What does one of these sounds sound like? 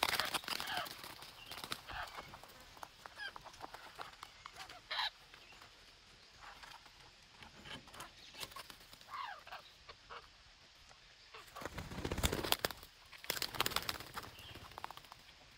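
Wings flutter as parrots take off and land.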